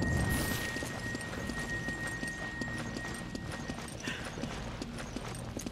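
Footsteps run on stone at a steady pace.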